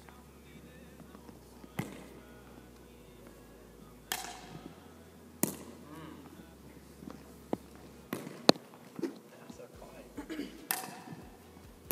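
A plastic ball bounces on a hard floor.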